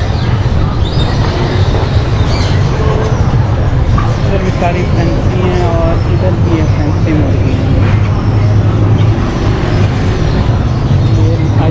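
Caged birds chirp and cluck.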